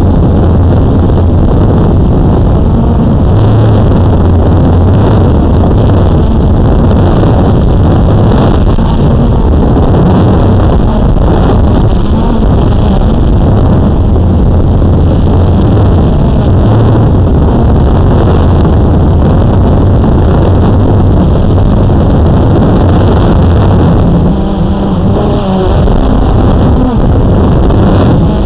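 A quadcopter drone's rotors buzz close by.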